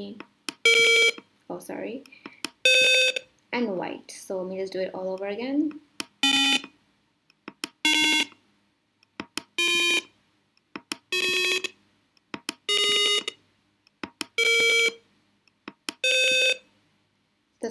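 An electronic buzzer beeps in short, steady tones of changing pitch.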